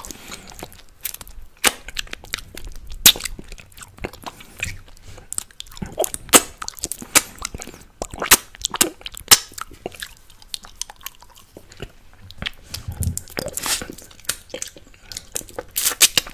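A man sucks and slurps on a plastic bottle's tip close to a microphone.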